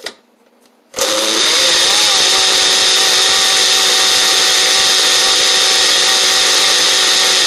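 A blender whirs loudly and steadily.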